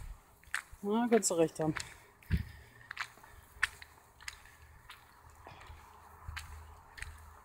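A man's footsteps scuff on stone.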